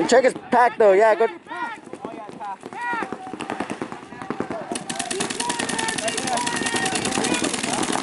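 A paintball gun fires rapid popping shots.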